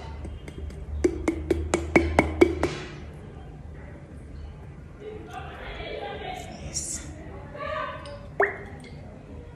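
A glass bottle clinks as it is handled.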